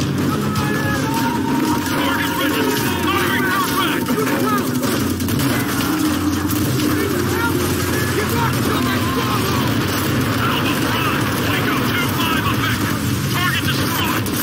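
Gunfire crackles rapidly nearby.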